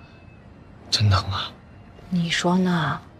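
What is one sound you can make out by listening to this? A young woman whines loudly up close.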